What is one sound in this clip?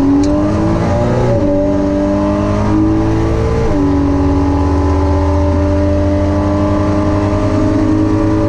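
A loud engine roars at full throttle, its pitch climbing and dropping as gears shift.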